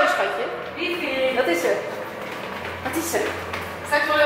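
Footsteps go down stairs.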